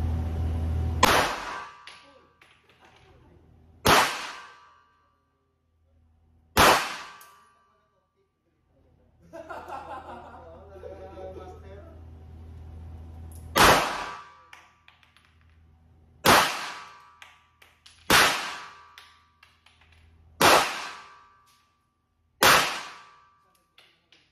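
Handgun shots bang loudly one at a time, echoing in an indoor range.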